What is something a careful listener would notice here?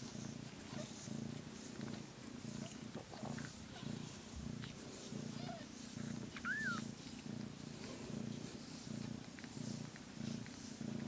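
A cat purrs loudly and steadily, close by.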